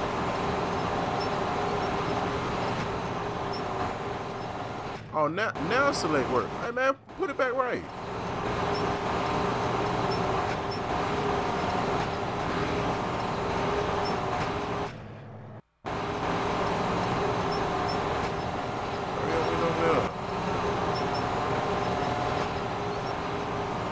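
A crane motor hums steadily.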